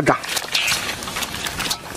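Fish flop and slap in a metal bowl.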